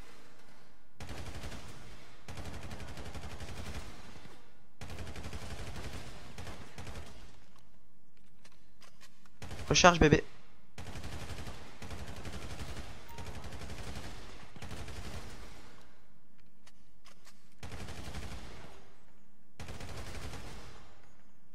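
Rapid gunfire bursts out in short volleys, echoing in an indoor range.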